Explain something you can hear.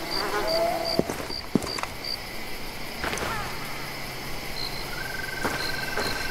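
Gunshots fire in sharp single bursts.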